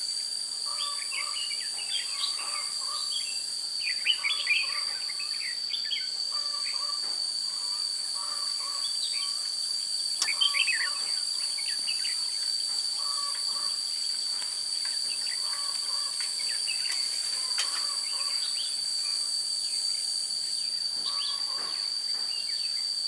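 Small birds chirp and twitter repeatedly nearby.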